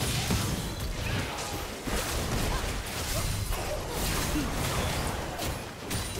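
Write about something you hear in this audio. Video game fight sounds with spells crackling and bursting.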